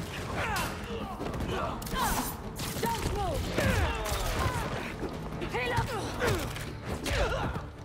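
Quick swooshing strikes cut through the air.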